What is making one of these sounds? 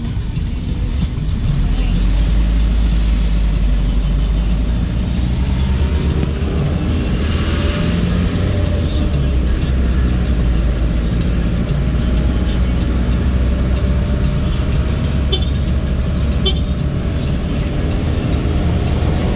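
A car engine hums steadily from inside a moving car.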